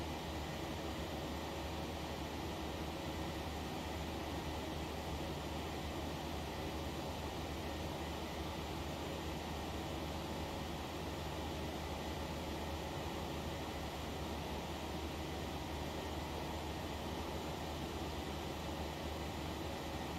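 Jet engines roar steadily in a cockpit.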